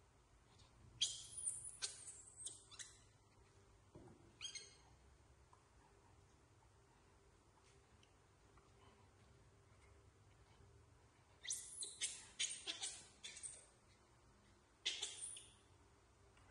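Baby monkeys squeal in short, shrill bursts close by.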